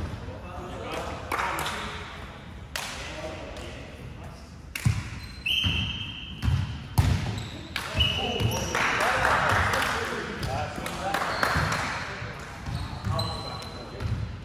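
A volleyball thumps off players' hands and forearms in a large echoing hall.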